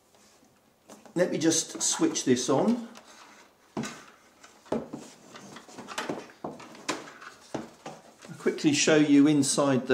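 A light plastic cover rattles and knocks as it is lifted off.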